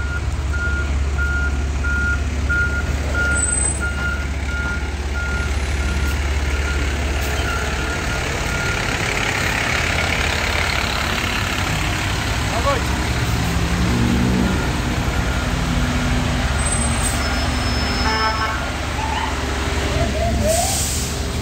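Rain patters steadily outdoors.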